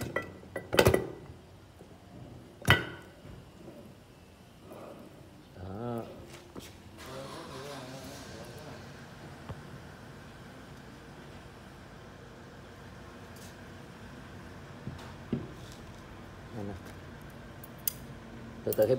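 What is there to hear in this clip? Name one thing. Metal parts clink and knock together as they are handled.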